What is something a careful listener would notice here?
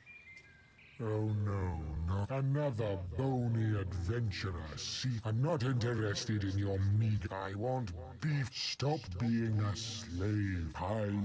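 A deep-voiced elderly man speaks theatrically.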